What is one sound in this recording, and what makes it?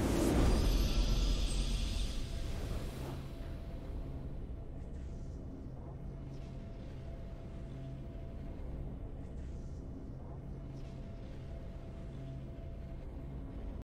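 A triumphant victory tune plays softly.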